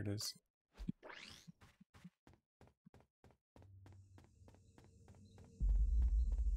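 Footsteps tread steadily on the ground.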